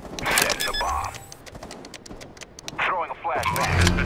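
A bomb keypad beeps as buttons are pressed.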